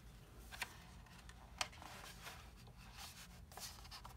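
A book page rustles as it is turned.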